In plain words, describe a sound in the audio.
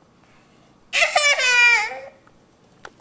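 A baby squeals loudly and shrilly close by.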